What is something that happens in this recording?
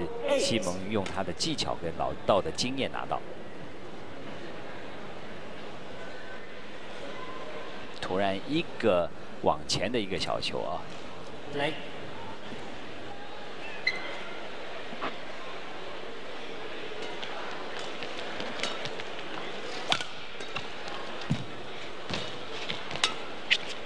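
A racket strikes a shuttlecock with sharp, snappy hits.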